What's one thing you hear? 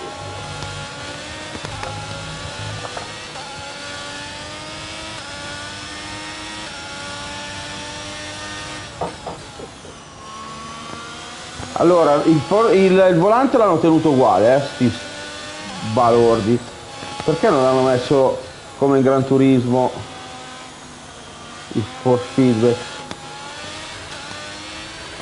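A racing car engine whines loudly, rising and falling in pitch as gears change.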